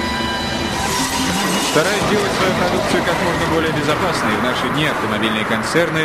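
A car crashes into a barrier with a loud metallic crunch.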